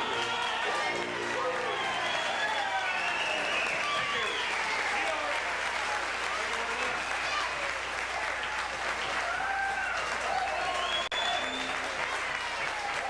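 A clarinet plays a lively melody close by.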